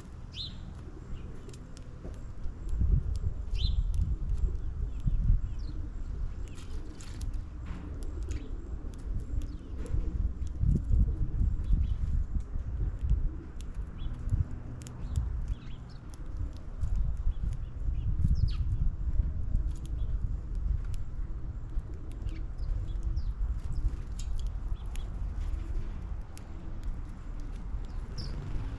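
Small birds chirp now and then.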